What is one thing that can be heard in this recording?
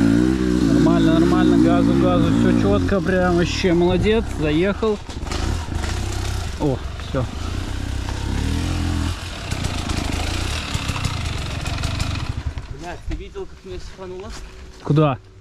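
A dirt bike engine rumbles and revs nearby.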